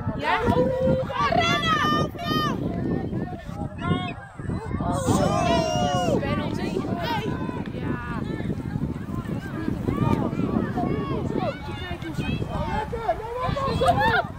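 A football thuds as a child kicks it.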